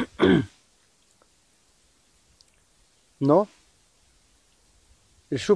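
A man speaks briefly in short bursts, close by.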